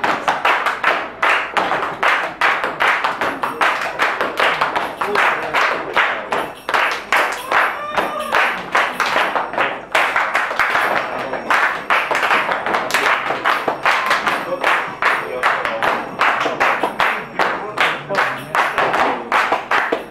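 Dancers' feet stamp on a hard floor.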